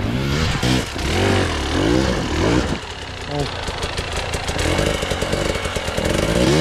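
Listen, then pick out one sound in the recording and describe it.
A dirt bike engine revs hard in bursts up close.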